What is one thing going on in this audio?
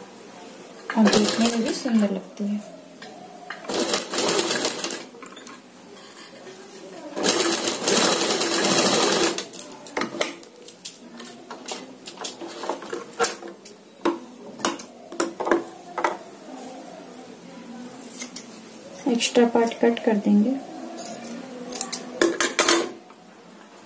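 A sewing machine runs in short, fast bursts.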